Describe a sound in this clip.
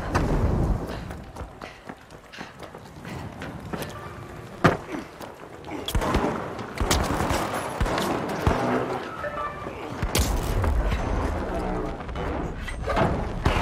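Gunshots and game effects crack and thump.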